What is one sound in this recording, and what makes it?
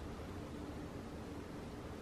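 Milk pours into a bowl with a soft splash.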